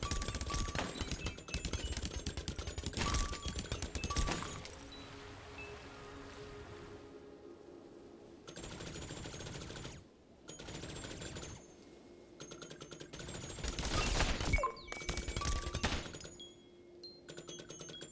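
Rapid game sound effects fire and burst.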